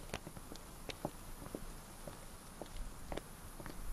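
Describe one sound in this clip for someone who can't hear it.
Footsteps tap on asphalt.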